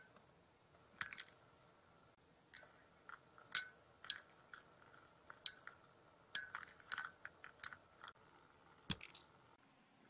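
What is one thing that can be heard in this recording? A spoon clinks sharply against a glass jug.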